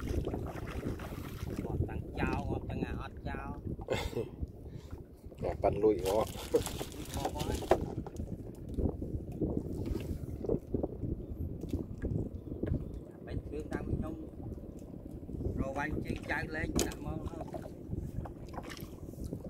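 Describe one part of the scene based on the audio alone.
Water splashes and drips as hands work a net beside a boat.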